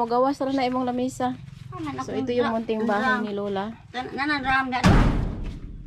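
A woman speaks close by in a lively, sing-song voice.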